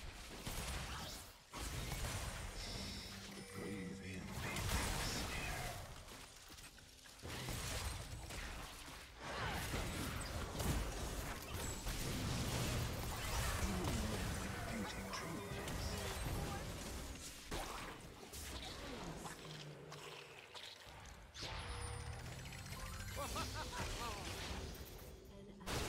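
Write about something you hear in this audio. Magic spells whoosh and burst in quick, loud blasts.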